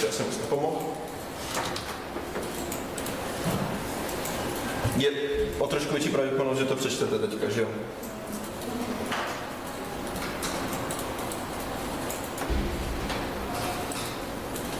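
A man lectures calmly in a room, heard through a microphone.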